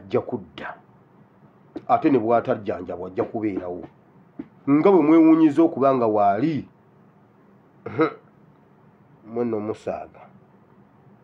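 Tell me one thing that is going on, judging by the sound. A man speaks calmly close to the microphone, in short bursts.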